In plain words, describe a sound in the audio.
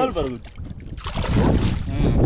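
A fish splashes at the water's surface.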